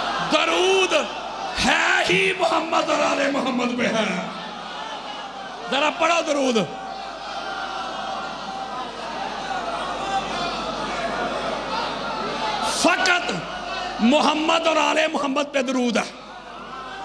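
A large crowd of men chants loudly in unison in an echoing hall.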